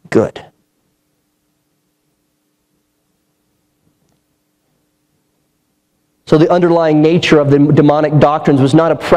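A man speaks with emphasis through a microphone.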